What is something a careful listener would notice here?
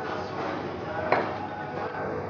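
A ceramic cup clinks down onto a saucer.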